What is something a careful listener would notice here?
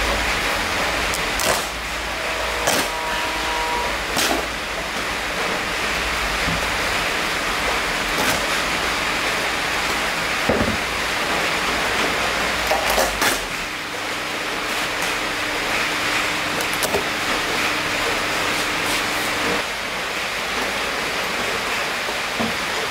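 A vinyl seat cover rustles and crinkles.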